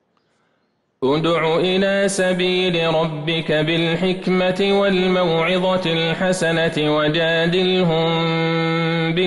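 A man chants in a long, drawn-out melodic voice through a microphone, echoing in a large hall.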